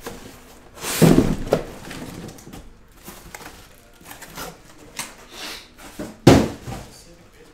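Boxes thump down onto a table.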